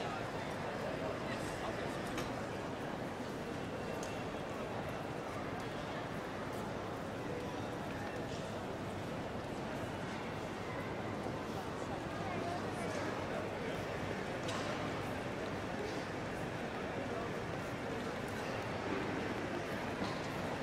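A crowd murmurs and footsteps echo through a large, echoing hall.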